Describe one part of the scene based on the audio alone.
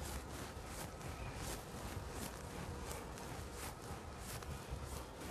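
A felt eraser rubs and swishes across a chalkboard.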